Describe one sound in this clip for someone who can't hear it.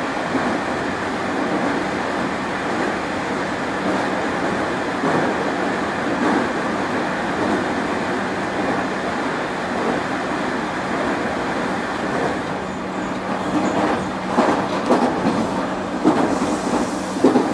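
A stopped train hums steadily as it idles.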